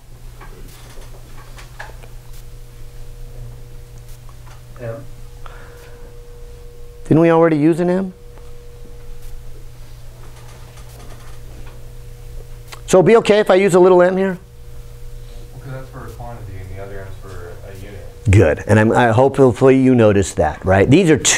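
A middle-aged man speaks in a lecturing tone, in bursts with pauses.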